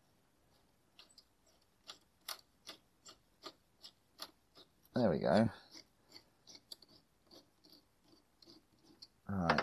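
A ratchet clicks rapidly.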